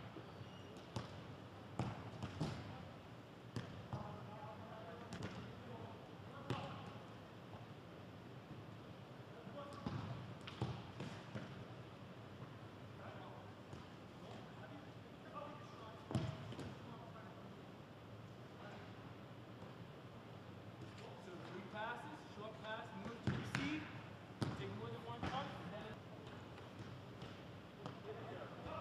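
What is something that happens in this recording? A soccer ball is kicked hard with a thud in a large echoing hall.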